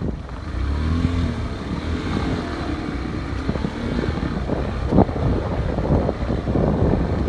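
Leaves rustle in the wind outdoors.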